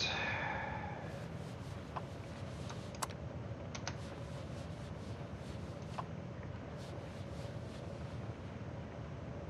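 Short soft clicks sound as menu items are selected.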